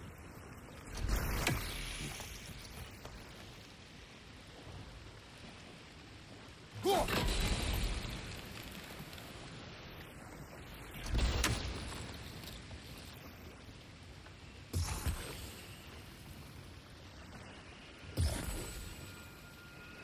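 An axe thuds heavily into wood again and again.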